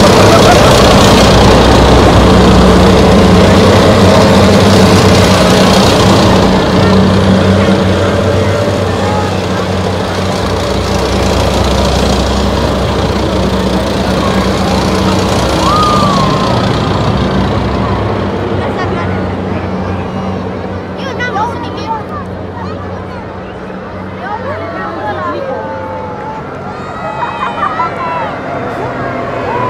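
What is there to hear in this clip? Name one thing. A crowd cheers and chatters along the roadside.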